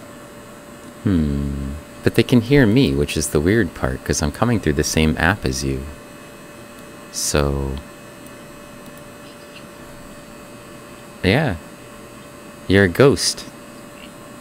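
A man speaks with animation into a close microphone, in short bursts with pauses.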